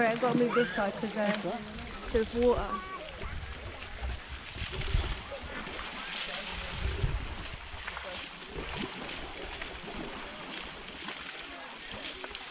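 Water splashes as people wade.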